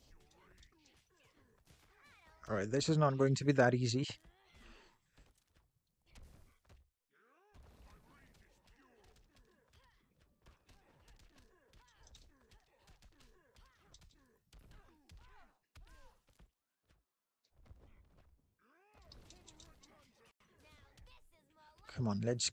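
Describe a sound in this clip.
Punches and blasts thud and crackle in a fighting game.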